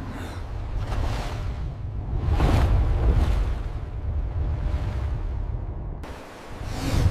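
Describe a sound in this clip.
Water churns and splashes as a huge creature breaks the surface.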